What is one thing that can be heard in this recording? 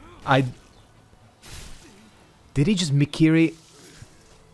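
Swords clash and ring with sharp metallic strikes.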